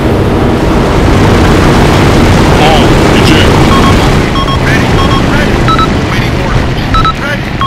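Wind rushes past a falling parachutist.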